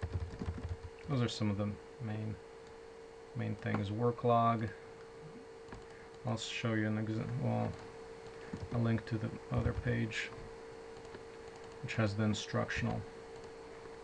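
A man talks calmly over an online call.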